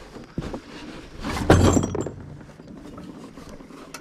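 Hands knock against a metal mower frame.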